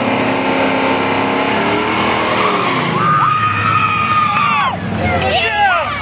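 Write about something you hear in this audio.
Tyres screech against the track during a burnout.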